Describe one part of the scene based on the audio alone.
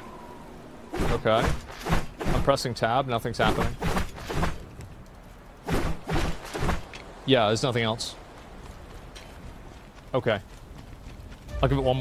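A young man talks with animation through a headset microphone.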